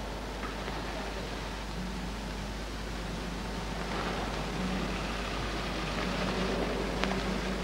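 A car engine runs with a low steady hum.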